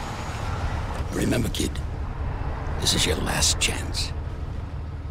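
A man speaks calmly and with menace, close by.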